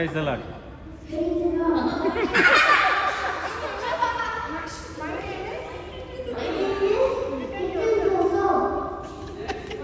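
A young boy speaks into a microphone, with animation.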